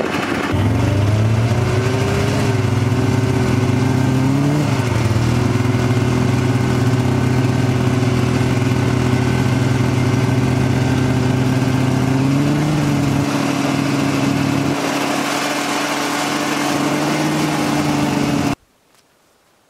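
A snowmobile engine hums steadily and revs as it rides over snow.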